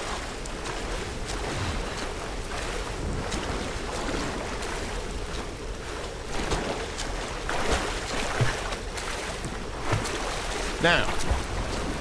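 Water splashes as a swimmer strokes through a river.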